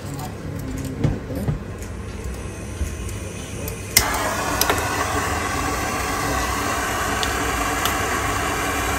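Small metal tools clink and tap against a hard surface.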